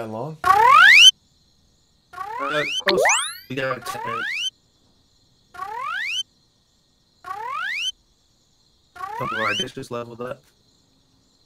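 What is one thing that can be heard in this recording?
Short rising chimes play one after another as cards pop up.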